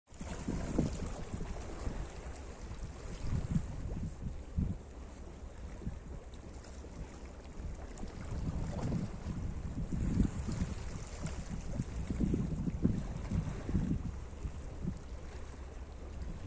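Small waves lap and splash against rocks.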